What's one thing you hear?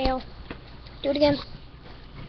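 A young boy speaks nearby.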